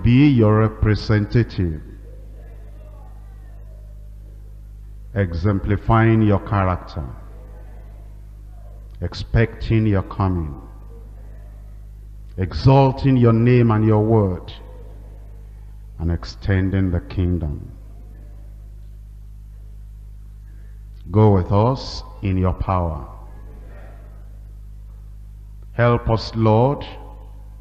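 An elderly man speaks slowly and deliberately in short phrases, with long pauses.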